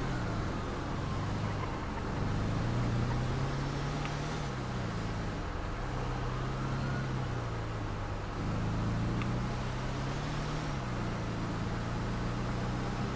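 A van engine hums steadily and rises and falls as the gears shift.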